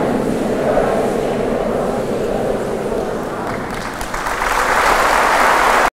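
A middle-aged man speaks calmly into a microphone, heard through loudspeakers in a reverberant hall.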